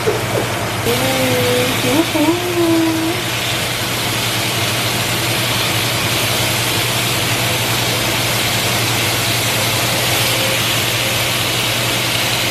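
Metal tongs clink against a frying pan.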